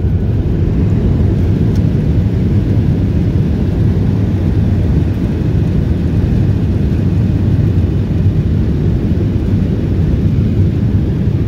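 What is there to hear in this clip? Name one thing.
A jet airliner's engines rumble steadily inside the cabin as the plane rolls along the runway.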